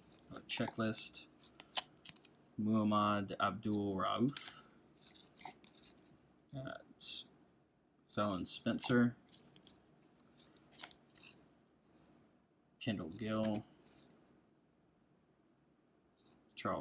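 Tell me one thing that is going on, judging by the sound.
Trading cards shuffle and slide against each other in hand.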